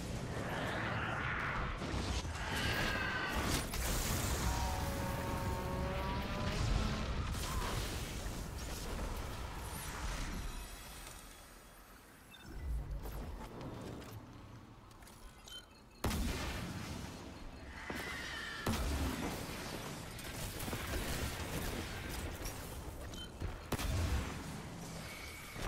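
Gunfire and explosions crackle and boom in a video game.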